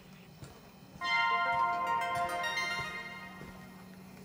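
A short jingle plays through a small laptop speaker.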